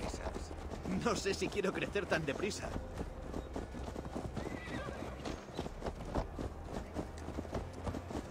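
Horses' hooves clop steadily on a dirt path.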